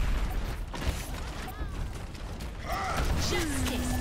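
Video game explosions boom.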